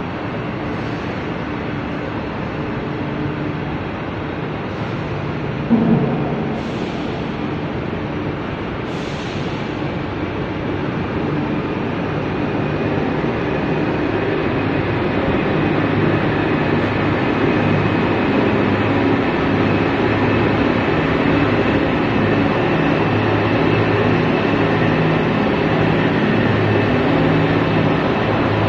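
Industrial machinery hums and rumbles steadily in a large echoing hall, growing louder.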